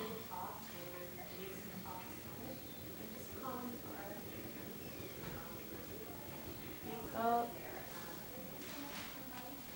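A television plays sound faintly.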